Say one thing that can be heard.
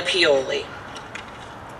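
A woman speaks calmly into a microphone outdoors.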